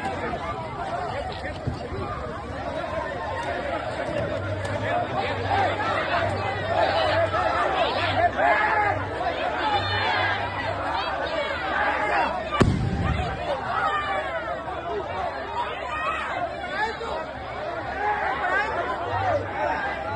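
A crowd of men shouts and chants loudly outdoors.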